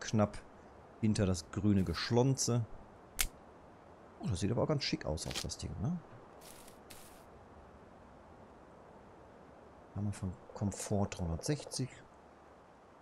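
A man talks calmly and casually into a nearby microphone, pausing now and then.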